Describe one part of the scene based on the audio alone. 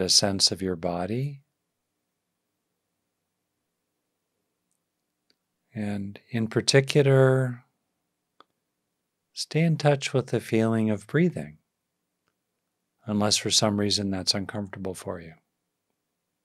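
An older man speaks calmly and clearly into a close microphone, in short phrases with pauses.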